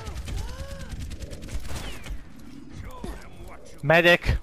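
A gun fires a quick series of shots.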